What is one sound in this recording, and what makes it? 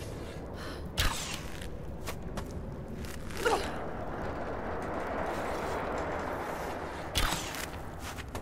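A bowstring twangs as arrows are shot.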